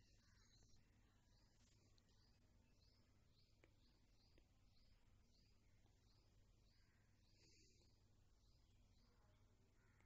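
A needle pulls thread through crocheted yarn.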